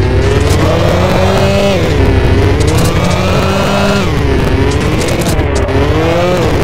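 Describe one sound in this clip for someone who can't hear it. Tyres screech on the road while a car drifts.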